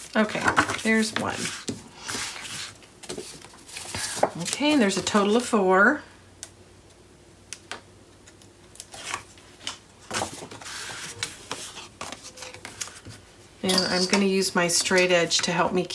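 Sheets of card rustle and slide as they are handled.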